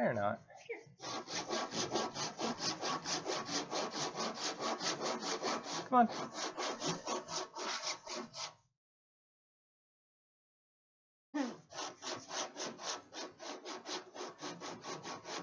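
A man rubs sandpaper over a wooden board in quick, even strokes.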